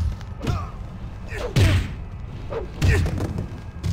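A body thuds heavily onto the ground.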